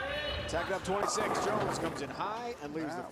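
Bowling pins crash and scatter.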